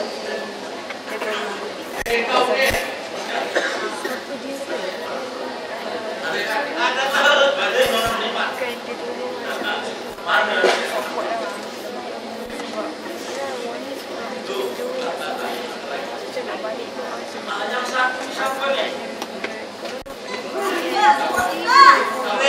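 A band plays guitars live in a hall.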